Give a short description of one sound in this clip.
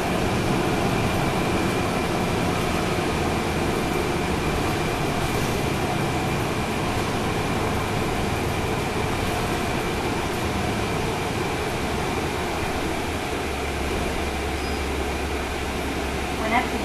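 A train rumbles and rattles steadily along an elevated track.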